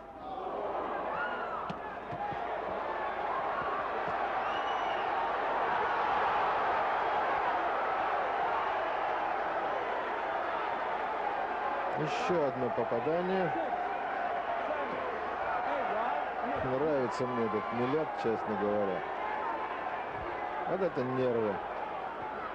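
A large crowd roars and cheers loudly in a big arena.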